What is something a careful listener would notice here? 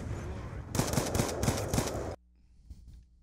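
Rapid gunfire bursts loudly in a game.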